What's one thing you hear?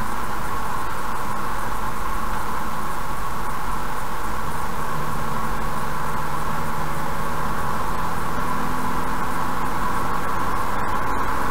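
Tyres roll steadily along a highway with a constant road roar from inside a moving car.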